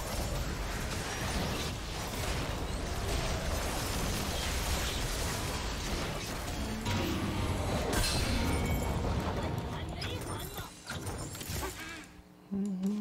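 Game battle effects clash and whoosh loudly.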